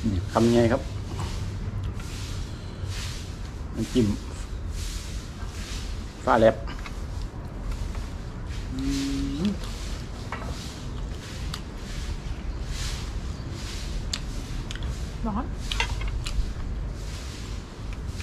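A woman chews food noisily up close.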